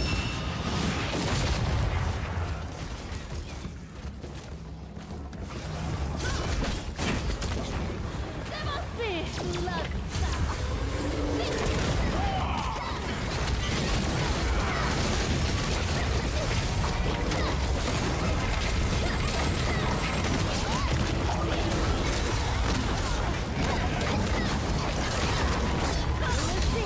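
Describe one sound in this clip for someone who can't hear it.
Spell blasts and magic effects whoosh and crackle in a game battle.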